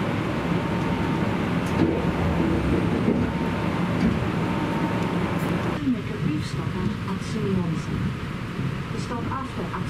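A train rumbles steadily along its tracks, heard from inside a carriage.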